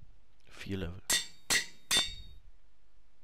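An anvil clangs several times.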